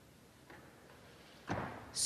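Feet thump onto a wooden balance beam.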